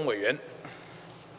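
A man speaks briefly into a microphone in a large hall.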